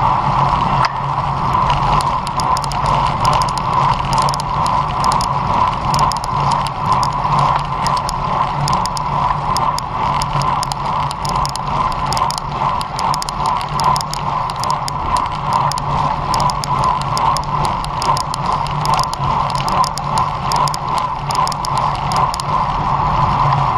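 Wind rushes loudly past a moving bicycle outdoors.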